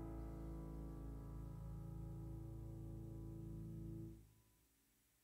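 An electric piano plays a song loudly.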